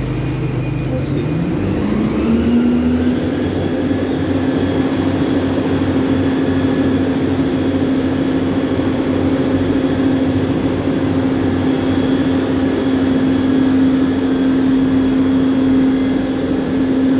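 A bus engine revs up and holds a higher drone.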